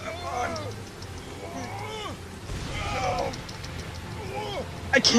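A young man talks with animation, close to a microphone.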